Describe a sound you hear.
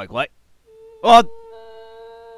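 A woman screams.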